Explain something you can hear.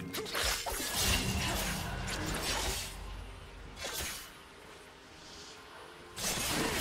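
Spells and attacks burst and crackle in a video game battle.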